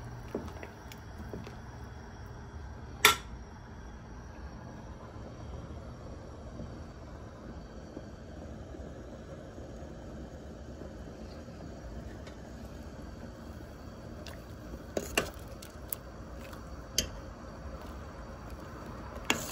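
A metal spoon clinks against a pot.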